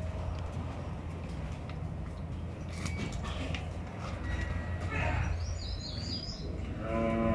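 Hooves of cattle clatter and shuffle on a hard floor.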